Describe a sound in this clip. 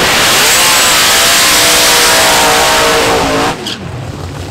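Tyres screech on the track during a burnout.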